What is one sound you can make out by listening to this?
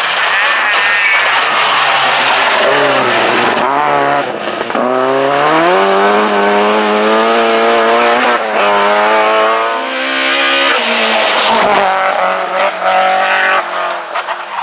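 A rally car engine revs hard and roars past at close range.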